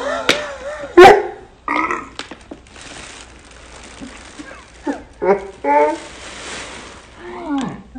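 Two young women laugh close by.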